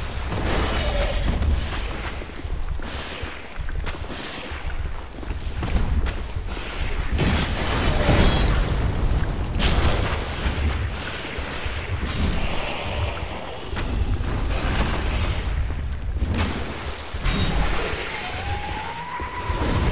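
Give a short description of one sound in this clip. A huge creature roars and growls.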